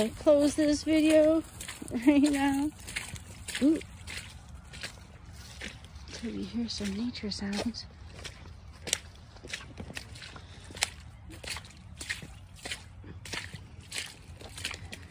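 Footsteps crunch and rustle through dry leaves.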